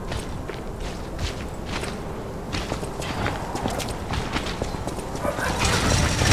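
Footsteps clatter on wet cobblestones.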